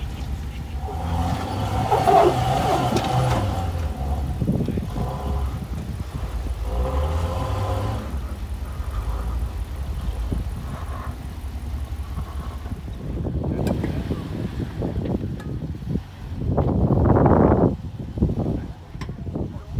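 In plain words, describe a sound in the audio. An off-road vehicle's engine rumbles and revs as it crawls slowly over rock.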